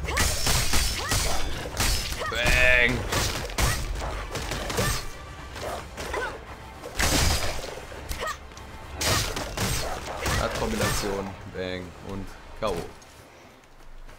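Blades slash and strike with sharp hits in a fight.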